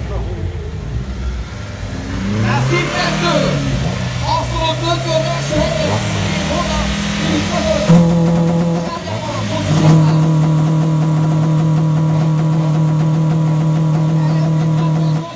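A car engine idles and revs loudly close by.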